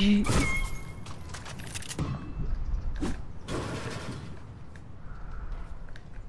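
Footsteps clank on a metal roof.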